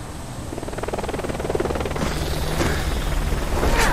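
A helicopter flies overhead with a thudding rotor.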